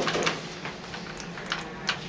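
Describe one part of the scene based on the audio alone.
A finger presses an elevator button with a soft click.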